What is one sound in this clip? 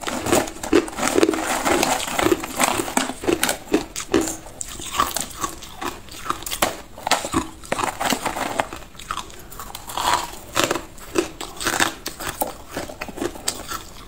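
Ice chunks clink and rattle in a plastic container.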